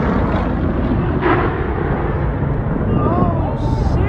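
A plane crash bangs loudly in the distance.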